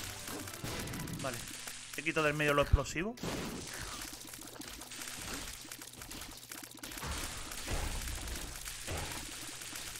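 Video game sound effects of shots and splats play rapidly.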